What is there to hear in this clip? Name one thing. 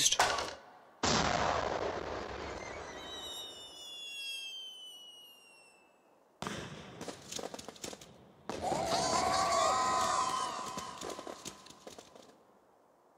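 Fireworks burst with loud booms and crackle.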